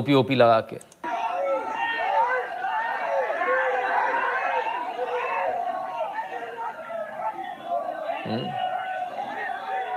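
A large crowd shouts and clamors in a scuffle.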